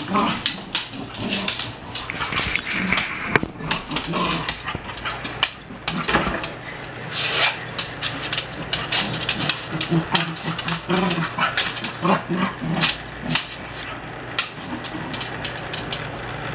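A dog's claws click and scrape on a wooden floor.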